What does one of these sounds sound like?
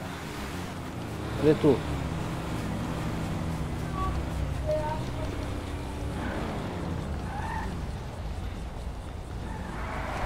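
Cars drive past on a road nearby.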